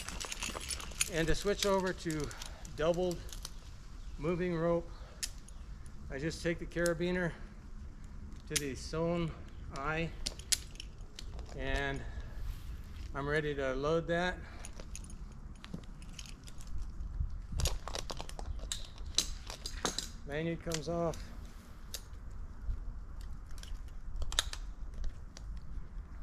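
Metal climbing gear clicks and rattles on a rope.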